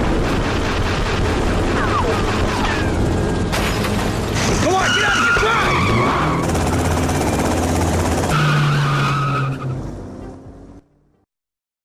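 A helicopter's rotor whirs loudly nearby.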